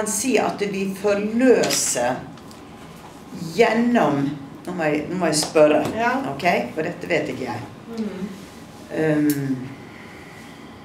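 A middle-aged woman speaks expressively close by.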